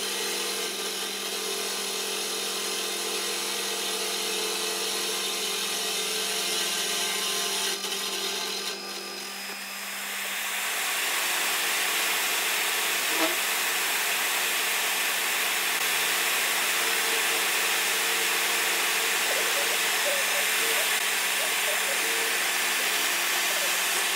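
A milling machine motor hums steadily.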